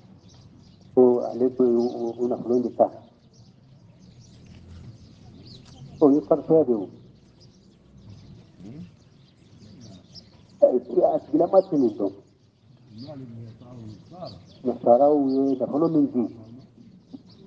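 An elderly man chants in short, drawn-out phrases with pauses between them.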